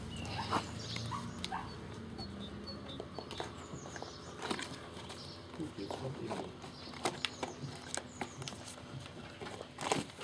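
A puppy knocks a plastic toy about on the ground.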